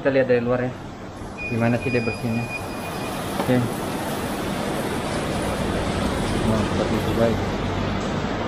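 A window cleaner slides and squeaks across glass.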